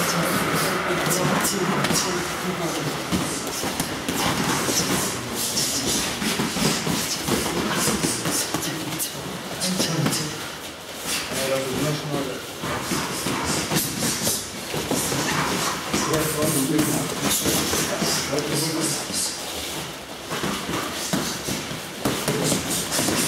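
Boxing gloves thud against punch mitts.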